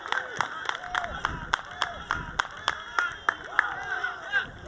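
Several people clap their hands outdoors.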